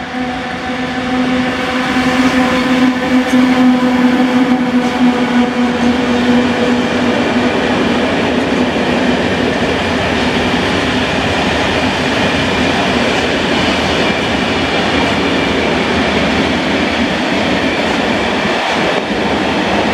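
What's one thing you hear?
Freight wagons rumble and clatter steadily over the rails.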